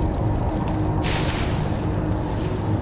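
Leafy branches rustle as someone pushes through a bush.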